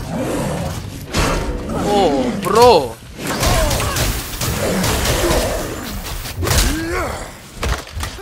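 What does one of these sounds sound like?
Axe blows thud and clash in a fight.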